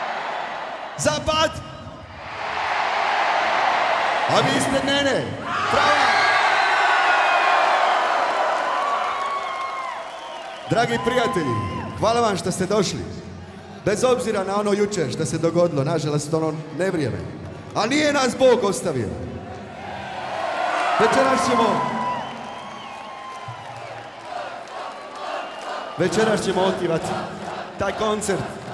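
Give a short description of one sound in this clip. A man speaks loudly into a microphone over loudspeakers to a crowd.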